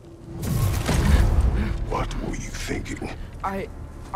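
A man speaks in a deep, gruff voice.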